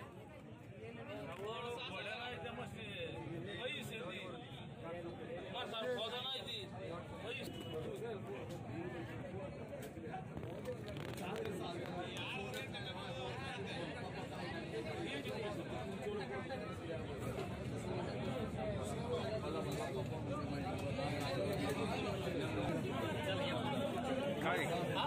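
A crowd of men chatter all around, outdoors.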